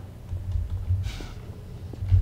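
A metal bar swishes through the air.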